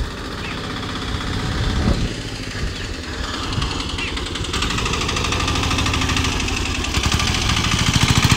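An auto-rickshaw engine rumbles close by.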